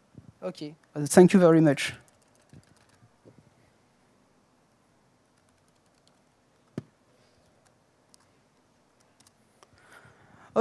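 Fingers tap on a laptop keyboard.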